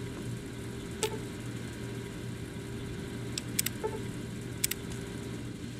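A menu clicks with a short beep.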